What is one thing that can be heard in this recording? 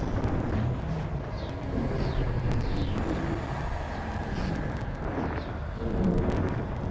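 A spaceship engine hums and rumbles steadily.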